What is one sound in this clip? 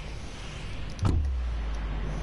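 A sudden whoosh sounds as a figure leaps from a flying bus.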